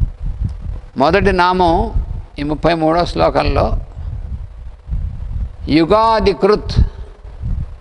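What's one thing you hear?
An elderly man chants slowly into a microphone.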